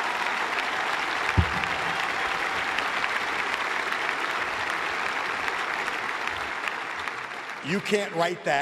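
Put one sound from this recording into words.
A crowd claps and cheers in a large echoing space.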